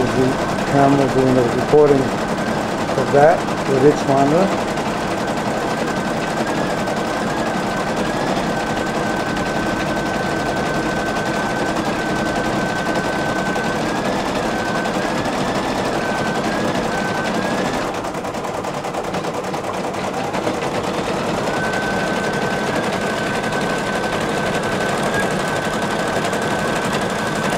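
An embroidery machine hums steadily with a thin high whine.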